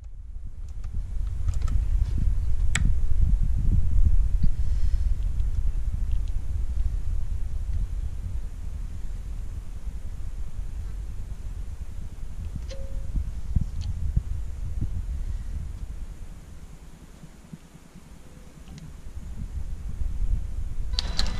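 A finger clicks buttons on a panel.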